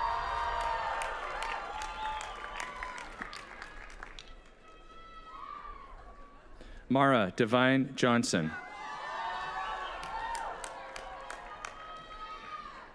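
An audience claps and cheers in the open air.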